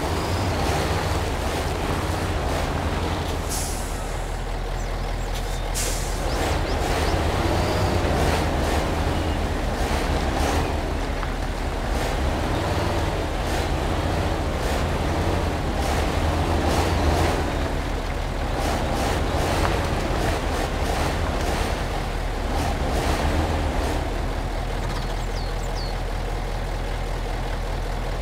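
Mud squelches and splashes under a truck's tyres.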